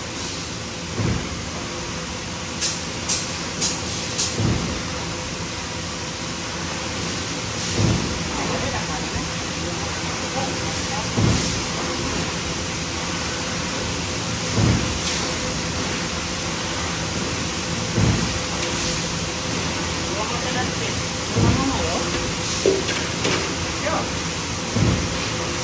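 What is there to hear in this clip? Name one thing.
A stamping press thumps at a regular pace.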